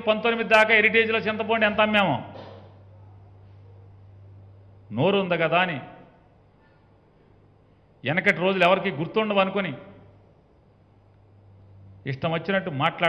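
A middle-aged man speaks firmly into a microphone in short bursts with pauses.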